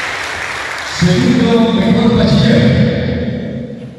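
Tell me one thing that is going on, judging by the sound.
A man speaks into a microphone, announcing over a loudspeaker.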